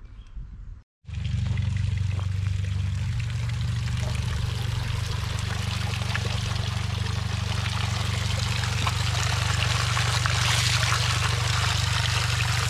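Water trickles and splashes steadily onto pebbles close by.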